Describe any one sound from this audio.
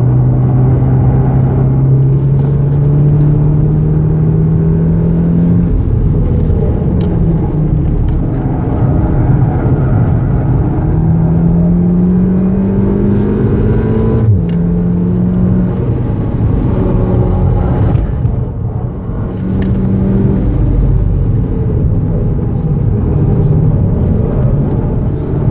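Tyres rumble over the track surface.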